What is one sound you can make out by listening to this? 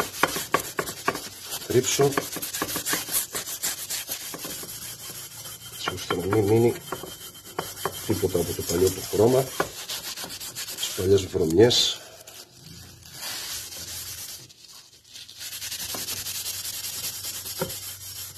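A metal rail clicks and scrapes as hands handle it.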